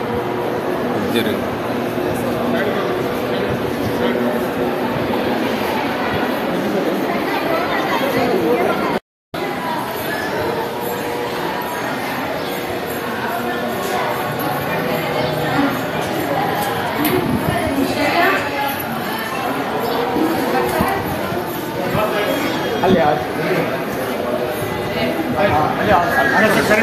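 Footsteps shuffle on a hard floor.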